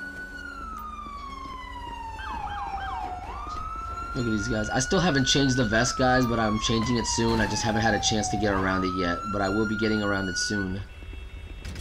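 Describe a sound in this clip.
A police siren wails nearby, rising and falling.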